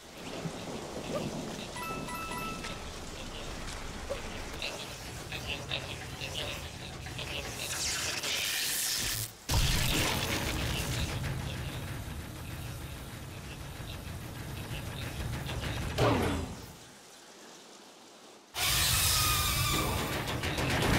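Electric sparks crackle and buzz loudly.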